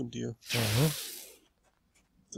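A laser weapon fires a burst of shots.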